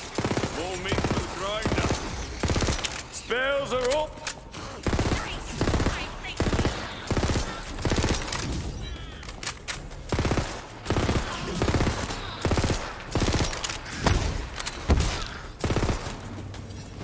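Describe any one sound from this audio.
Gunfire bursts in rapid volleys.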